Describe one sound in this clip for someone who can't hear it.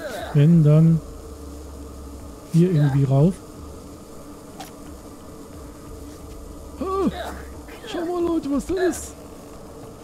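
A middle-aged man talks in short bursts, close to a microphone.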